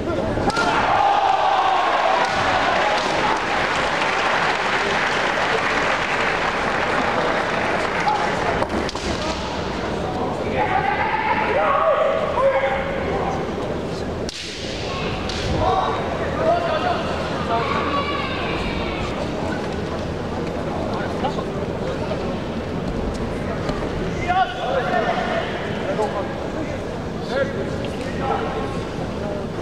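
Men shout sharp, loud battle cries in a large echoing hall.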